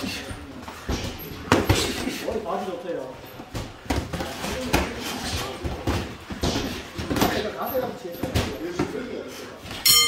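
Feet shuffle and squeak on a padded floor.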